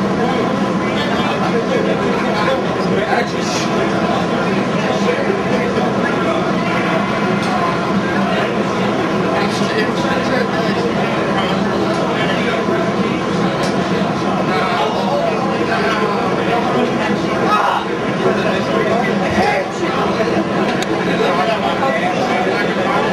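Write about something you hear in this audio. A band plays loud, distorted heavy music through amplifiers.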